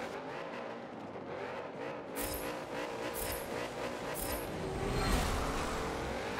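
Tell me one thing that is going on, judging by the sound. Car engines idle and rev in a steady drone.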